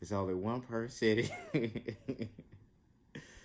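A young man laughs briefly.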